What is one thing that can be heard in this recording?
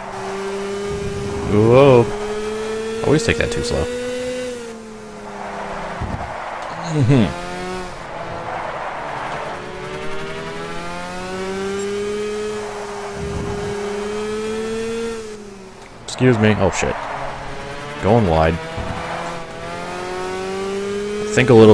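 Other kart engines whine past nearby.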